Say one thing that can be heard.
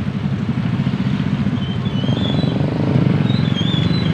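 A motorcycle passes by nearby.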